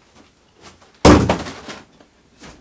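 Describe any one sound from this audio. A heavy box thuds down.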